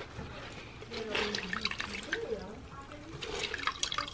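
Water splashes and drips as a cloth is wrung out in a bucket.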